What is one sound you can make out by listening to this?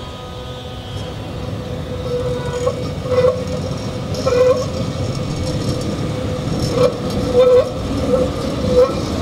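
Tram wheels squeal on the rails in short bursts.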